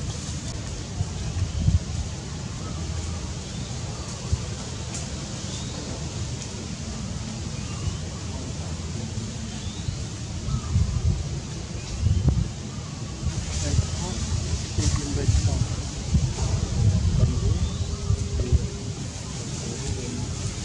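Leaves and branches rustle as monkeys climb through a tree.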